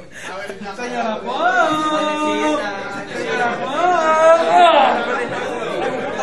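A crowd of young people sings and shouts loudly together.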